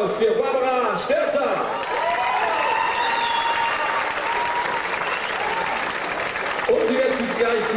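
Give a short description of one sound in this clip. A saxophone plays a solo over the band.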